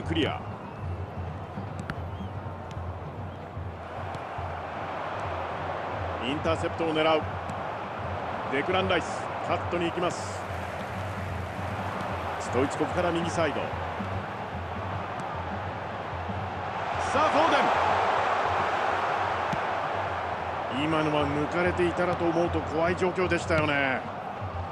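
A stadium crowd roars steadily, swelling louder for a moment.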